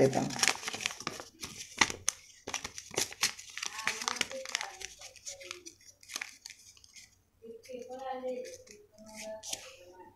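Paper rustles and crinkles in a young man's hands.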